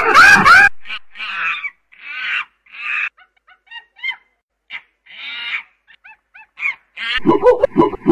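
A chimpanzee screams and hoots loudly, in rising, breathy calls.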